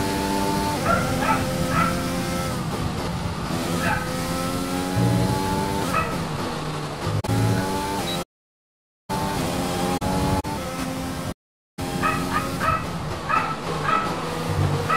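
A racing car engine screams at high revs, rising and falling with each gear change.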